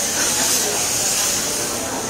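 A flame flares up from a pan with a whoosh.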